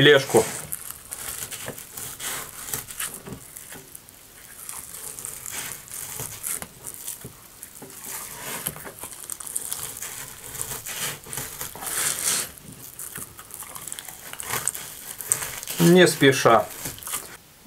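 A knife scrapes and slices along a cutting board.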